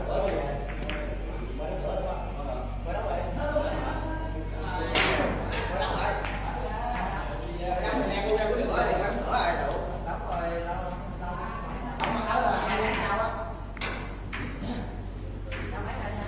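Billiard balls clack against each other and thud off the cushions.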